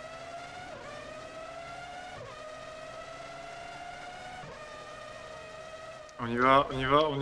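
A racing car engine whines, climbing in pitch and dipping briefly at each gear change.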